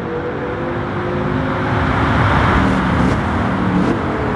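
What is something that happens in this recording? A sports car engine revs loudly up close and passes by.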